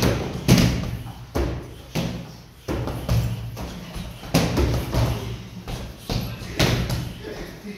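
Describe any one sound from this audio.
Punches thud against a heavy punching bag.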